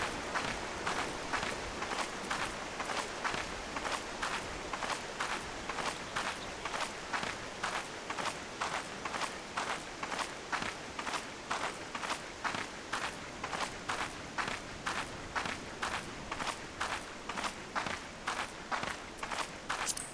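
Footsteps crunch steadily on grass and dirt.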